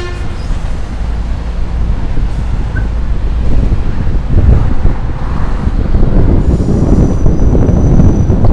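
Wind rushes and buffets loudly past a moving rider, growing stronger.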